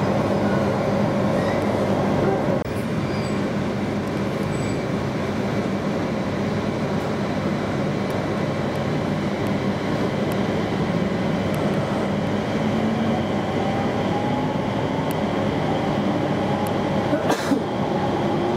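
An electric train rumbles along the track, heard from inside a carriage.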